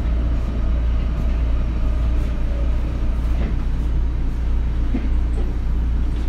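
A stopped subway train hums with a steady low rumble.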